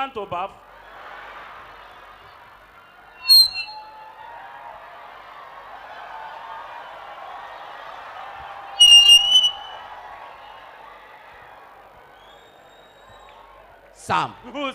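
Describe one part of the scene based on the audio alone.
A large crowd laughs and cheers.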